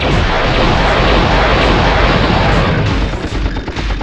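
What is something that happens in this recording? A fiery explosion roars.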